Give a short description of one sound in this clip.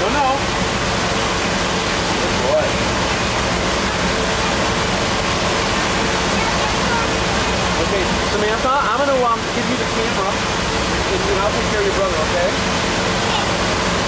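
A motorboat engine drones, running at speed.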